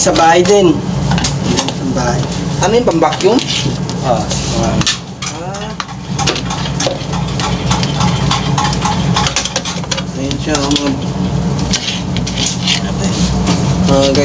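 Plastic parts click and clatter.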